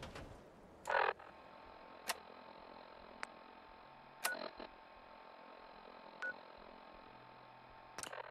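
Short electronic clicks and beeps sound from a game menu.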